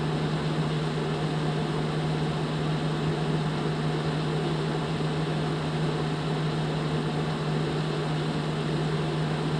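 A simulated semi-truck engine drones at steady highway cruising speed.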